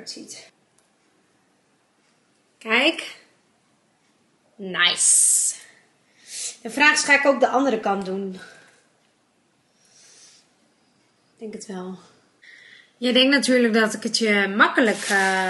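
A young woman talks close by with animation, in short bursts.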